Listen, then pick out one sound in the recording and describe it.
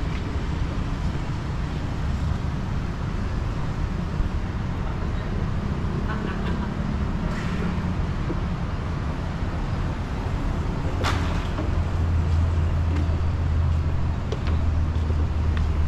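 Wind blows steadily outdoors, rumbling.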